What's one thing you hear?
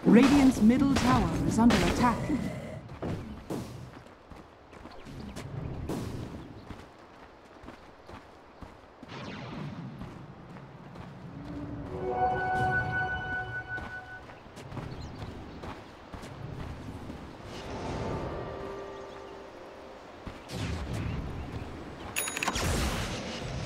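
A video game's sound effects chime and whoosh.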